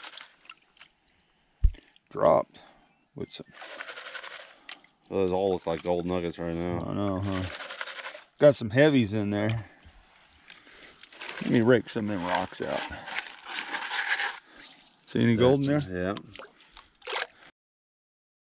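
Water sloshes as a sieve is dipped and shaken in a tub.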